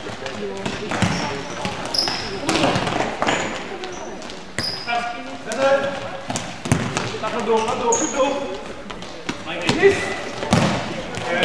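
A ball is kicked with sharp thuds in a large echoing hall.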